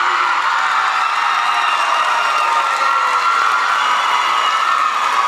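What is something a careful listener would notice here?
A large choir sings together in a hall, heard from the audience.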